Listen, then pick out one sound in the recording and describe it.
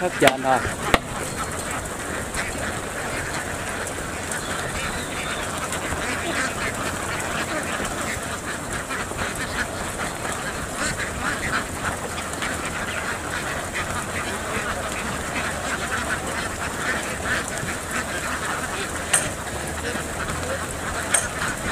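A large flock of ducks quacks loudly and continuously.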